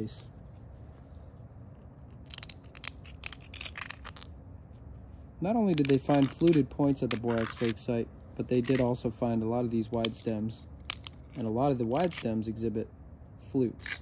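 A flint edge scrapes and clicks against a rubbing stone.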